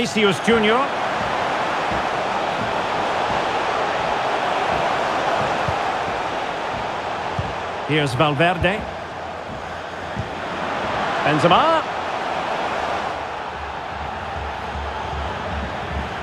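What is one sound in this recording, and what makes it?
A large stadium crowd roars steadily all around.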